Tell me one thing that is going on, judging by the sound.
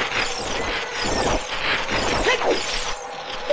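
A sword swishes through the air with a sharp slash.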